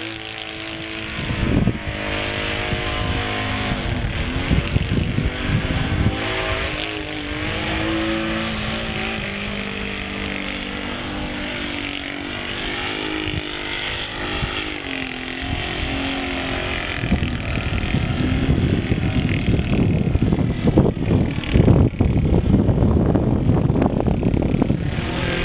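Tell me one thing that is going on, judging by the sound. A small propeller plane's engine drones overhead, its pitch rising and falling.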